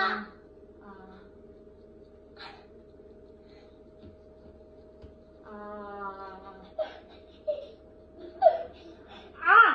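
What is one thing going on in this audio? A young child squeals and yells.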